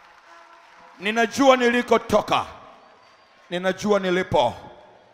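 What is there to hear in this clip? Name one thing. A man speaks forcefully through a microphone and loudspeakers.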